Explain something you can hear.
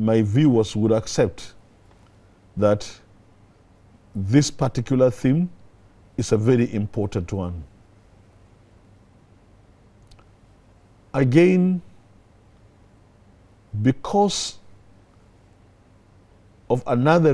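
An older man speaks calmly and deliberately into a close microphone, with pauses between phrases.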